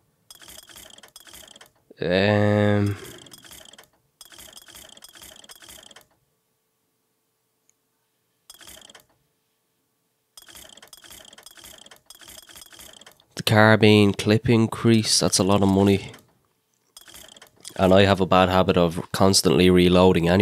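Soft clicks tick as a game menu is scrolled.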